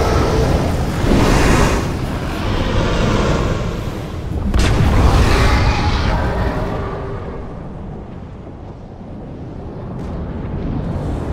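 A deep rumbling blast booms and swirls.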